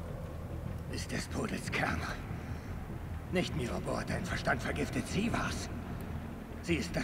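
A young man answers in a low, tense voice.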